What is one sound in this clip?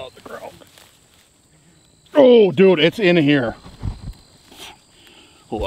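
Footsteps swish and rustle through tall grass close by.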